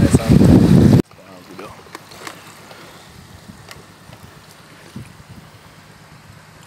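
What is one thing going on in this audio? Water laps gently against a raft.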